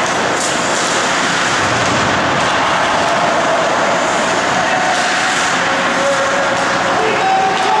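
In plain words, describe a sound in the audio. A hockey puck clacks off sticks.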